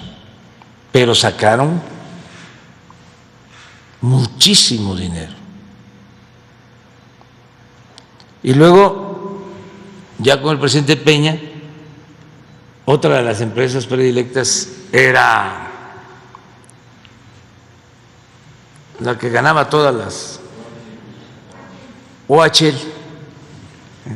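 An elderly man speaks slowly into a microphone, with long pauses, in an echoing room.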